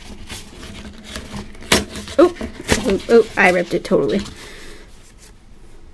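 A folded paper leaflet is unfolded with a soft crinkle.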